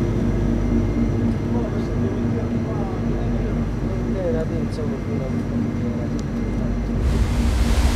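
A man talks calmly indoors.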